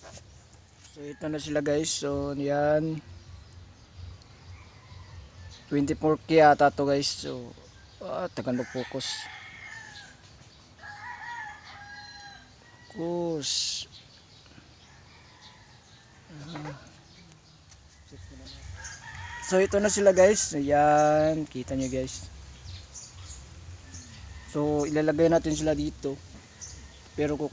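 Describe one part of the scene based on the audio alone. A young man talks calmly, close by, in short bursts.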